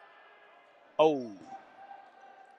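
A young man gives a sudden loud shout.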